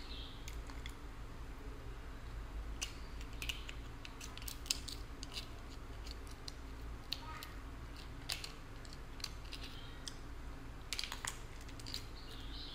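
Crab shells crack and crunch as fingers break them apart close up.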